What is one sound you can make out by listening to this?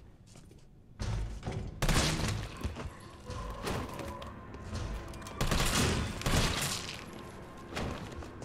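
Gunshots fire in quick bursts, close and loud.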